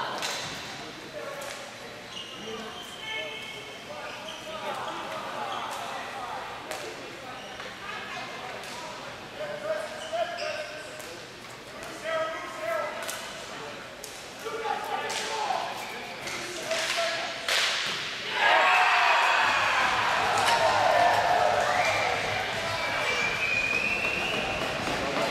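Spectators talk and call out nearby.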